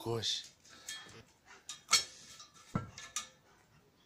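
A metal bowl clanks as a dog paws at it.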